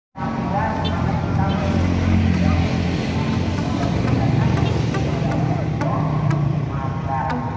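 Car engines rumble steadily nearby.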